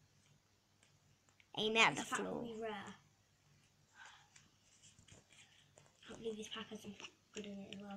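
Trading cards rustle and flick in a boy's hands.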